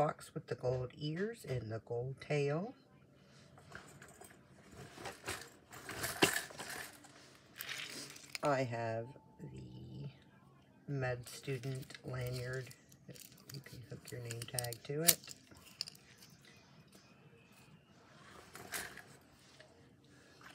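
Small plastic trinkets and metal key rings clink and rattle as they are handled.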